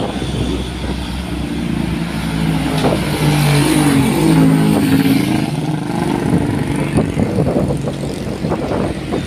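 A truck engine drones loudly close by.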